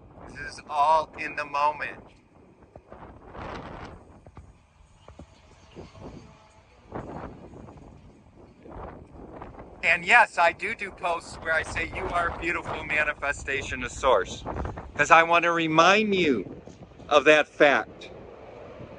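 A middle-aged man talks with animation close to the microphone.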